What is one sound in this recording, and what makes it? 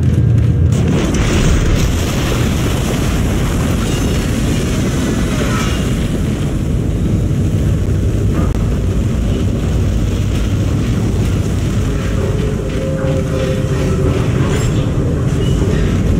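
Steam hisses steadily from a vent.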